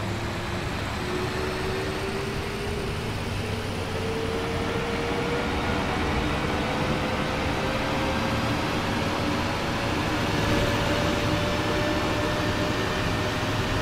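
A bus engine hums steadily and slowly rises in pitch as it speeds up.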